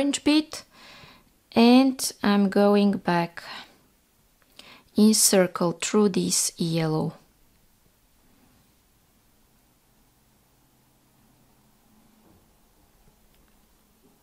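Small beads click softly as a needle and thread pass through them.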